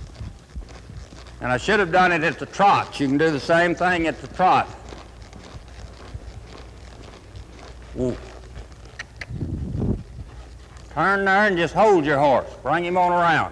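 A horse's hooves thud softly on soft dirt.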